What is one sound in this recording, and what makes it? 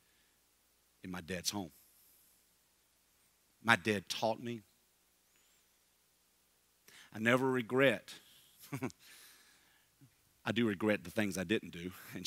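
A middle-aged man speaks to an audience in short bursts with pauses, through a microphone in a room with slight echo.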